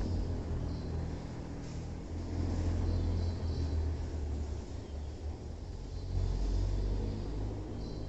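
A whiteboard eraser rubs across a board.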